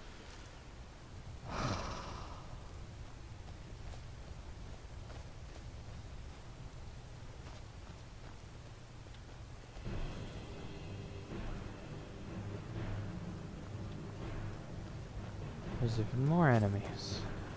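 A fire burns and crackles.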